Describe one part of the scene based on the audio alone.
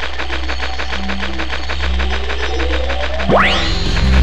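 A magic spell hums and swells, then rises to a bright whoosh.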